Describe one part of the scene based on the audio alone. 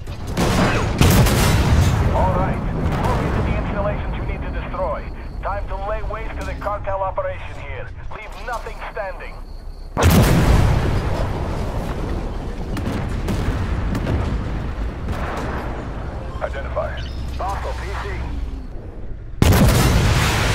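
A tank cannon fires with a heavy boom that rolls away.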